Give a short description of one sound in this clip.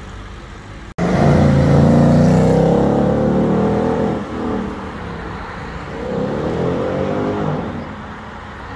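A third muscle car accelerates hard, its engine roaring as it pulls away.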